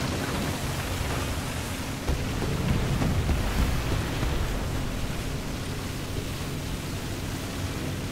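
Water splashes and churns as a tank drives through it.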